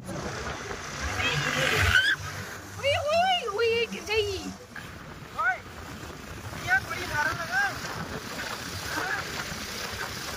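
A young woman laughs and talks with animation nearby.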